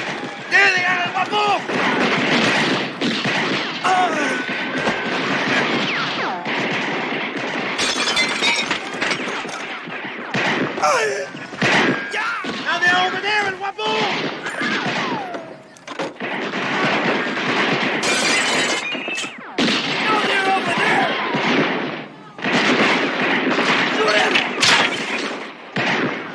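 Many gunshots crack in rapid, overlapping bursts outdoors.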